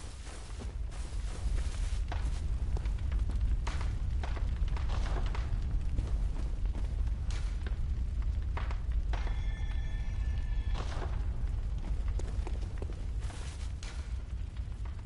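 Footsteps crunch on grass and stone.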